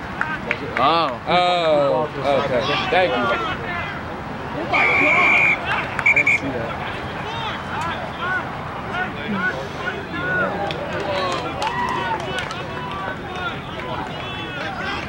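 A crowd of spectators chatters in the distance.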